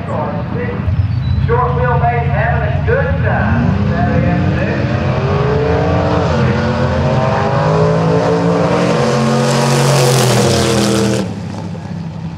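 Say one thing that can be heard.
Loud engines of drag racing cars roar and rev hard as the cars launch and race past.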